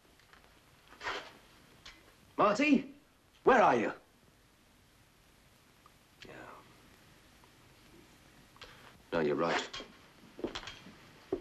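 A man speaks with feeling, in short bursts.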